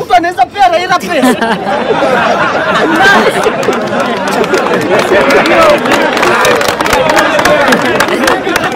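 A crowd of people talks and shouts all at once outdoors.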